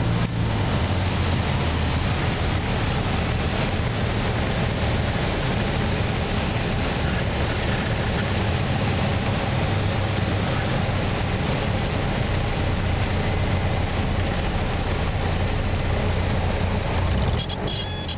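Wind rushes loudly past the cabin.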